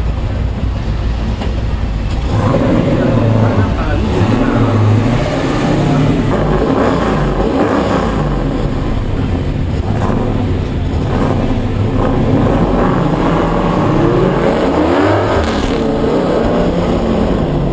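A V8 engine roars inside a car as it accelerates hard.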